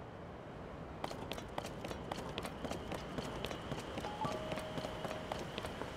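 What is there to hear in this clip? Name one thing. Quick footsteps patter on rock.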